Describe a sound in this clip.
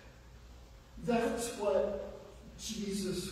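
A woman speaks calmly from a distance into a microphone in a large echoing hall.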